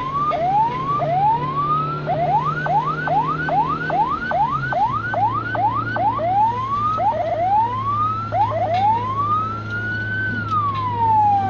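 A siren wails and yelps loudly and close by, switching between slow rising wails and fast rapid yelps.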